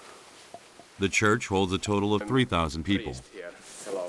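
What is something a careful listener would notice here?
A man talks calmly indoors.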